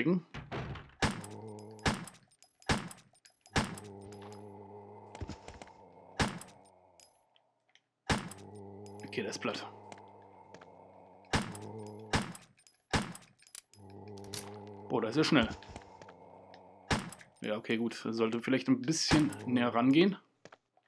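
Gunshots ring out again and again, echoing briefly.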